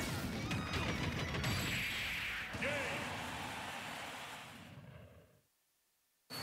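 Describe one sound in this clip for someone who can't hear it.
Fighting game blows and sound effects crash loudly, then fade to silence.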